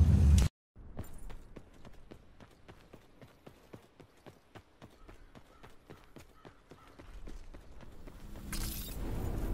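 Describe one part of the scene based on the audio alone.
Quick, regular footsteps thud on dry ground.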